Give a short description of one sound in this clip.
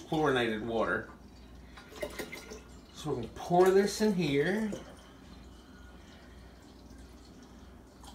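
Liquid pours from a jug into a jar with a steady trickle.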